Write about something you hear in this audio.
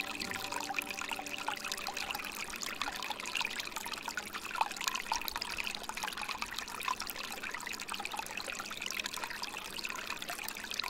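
Water trickles steadily from a spout and splashes into a pool.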